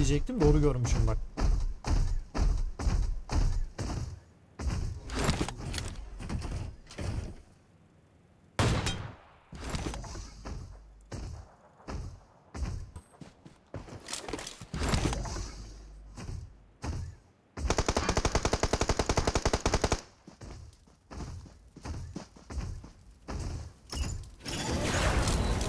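Heavy metal footsteps stomp in a steady rhythm.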